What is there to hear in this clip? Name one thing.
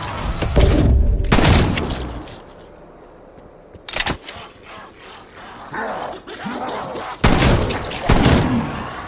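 A gun fires in loud, rapid bursts.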